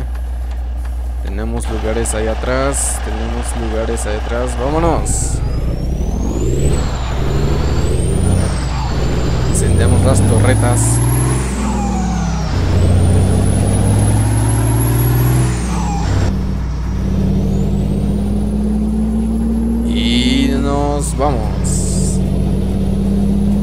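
A bus engine rumbles and revs up and down.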